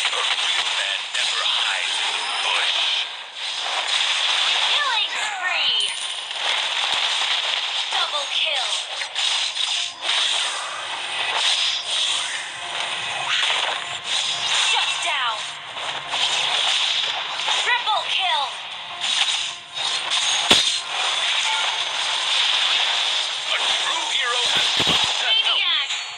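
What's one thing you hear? Mobile battle game sound effects clash and whoosh.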